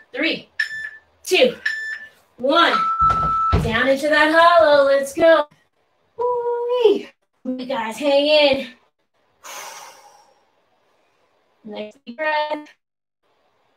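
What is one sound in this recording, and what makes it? A woman talks with animation close by, pausing between phrases.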